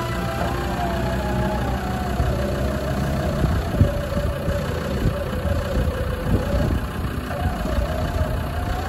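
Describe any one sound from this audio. An engine revs hard as a vehicle strains, stuck in mud.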